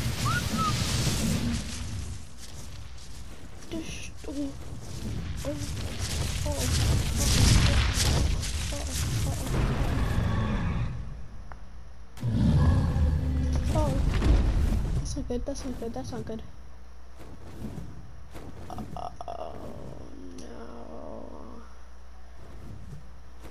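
Heavy wings beat in gusts of rushing air.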